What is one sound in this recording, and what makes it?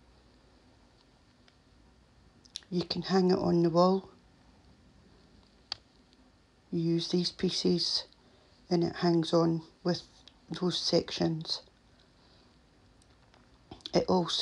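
A plastic cover slides along a plastic tray.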